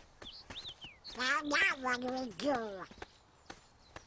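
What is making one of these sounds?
A man speaks in a squawking, duck-like voice.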